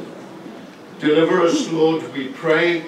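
A group of men sing together.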